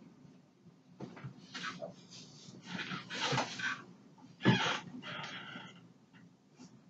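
A cloth sheet rustles as it is lifted and moved.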